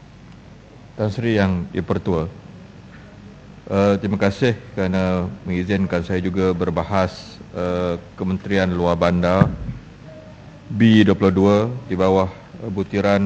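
A middle-aged man speaks formally into a microphone, reading out.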